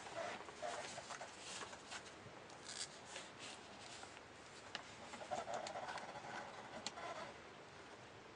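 Cloth rustles and brushes close by.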